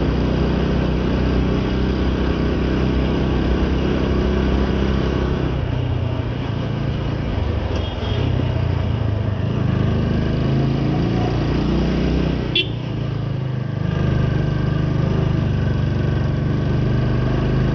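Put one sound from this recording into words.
A motorcycle engine rumbles up close and changes pitch as the rider speeds up and slows down.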